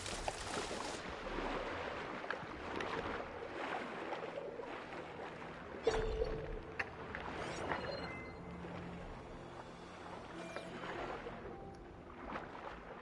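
Water gurgles and rumbles underwater.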